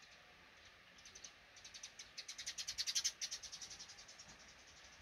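Baby birds cheep rapidly in a nest close by.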